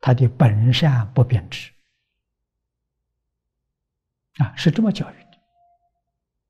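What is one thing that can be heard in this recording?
An elderly man speaks calmly and slowly into a close microphone, pausing between phrases.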